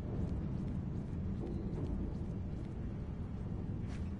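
A metal chain clinks and rattles as it is climbed.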